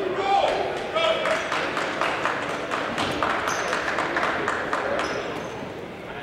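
Young men clap their hands rapidly.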